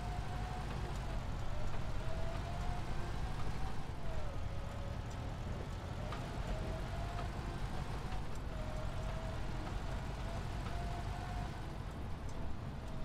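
A vehicle engine drones steadily as it drives along.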